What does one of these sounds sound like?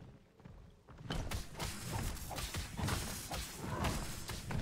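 Game combat sounds clash and whoosh.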